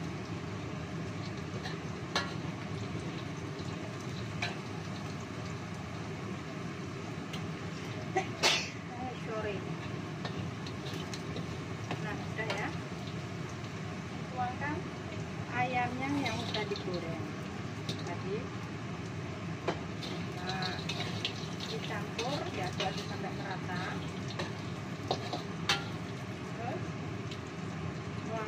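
Food sizzles in a hot wok.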